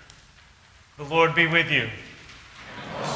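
A man reads aloud calmly in a slightly echoing room.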